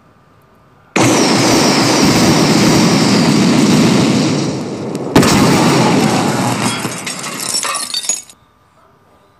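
A loud blast roars and rumbles, then slowly dies away.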